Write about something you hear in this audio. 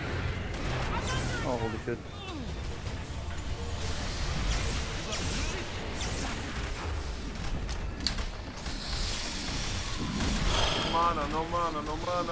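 Spell blasts and clashing weapons sound from a game battle.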